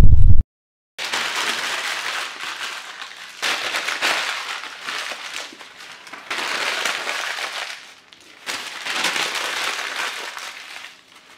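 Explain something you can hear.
Newspaper crinkles and crumples in hands.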